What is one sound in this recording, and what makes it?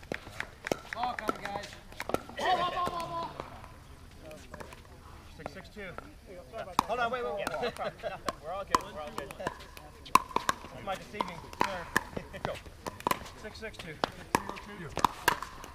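Paddles strike a plastic ball with sharp, hollow pops, back and forth.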